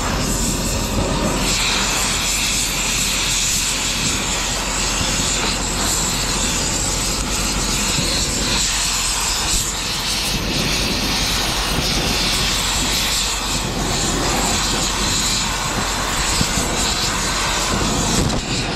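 A cutting torch hisses and roars steadily.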